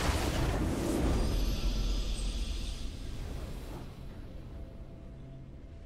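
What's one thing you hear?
A triumphant game fanfare swells and fades.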